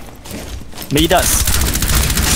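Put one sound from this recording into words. Rapid gunshots ring out close by.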